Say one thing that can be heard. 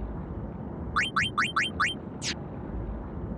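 Quick electronic menu blips sound in a rapid series.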